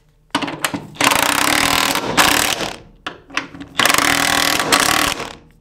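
A cordless impact wrench rattles in loud bursts.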